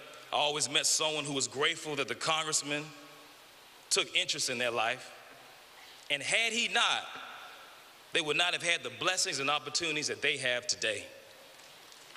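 A man speaks with emotion into a microphone in a large echoing hall.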